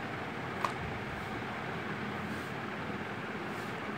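A small cardboard box is slid open by hand.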